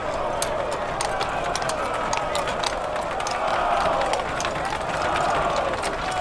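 Horse hooves clop on stone.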